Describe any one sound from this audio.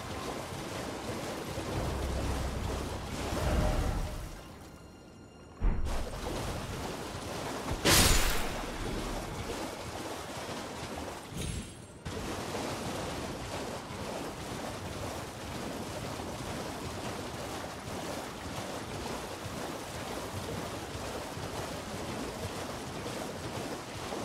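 A horse splashes at a gallop through shallow water.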